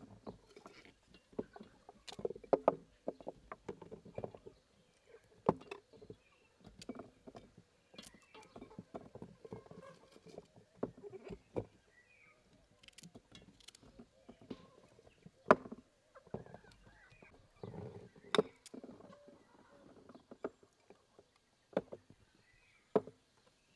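Cucumbers knock and squeak against glass as they are pressed into a jar.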